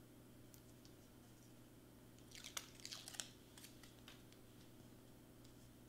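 Backing paper peels off a sticky pad.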